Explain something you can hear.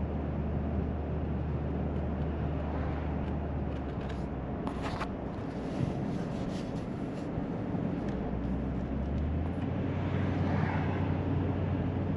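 Tyres roll on the road surface.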